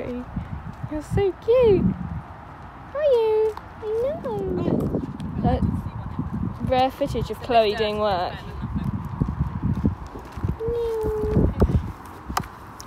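A young woman talks brightly and with animation, close by, outdoors.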